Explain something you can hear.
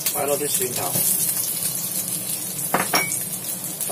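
Small shallots drop and clatter into a metal pan.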